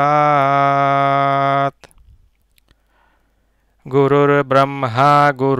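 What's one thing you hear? A man chants long, steady notes into a headset microphone, pausing briefly before starting again.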